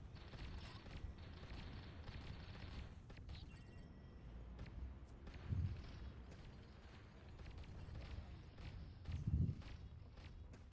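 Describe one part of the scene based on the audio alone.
Explosions boom with deep, dull thuds.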